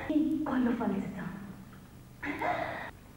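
A woman sobs and wails close by.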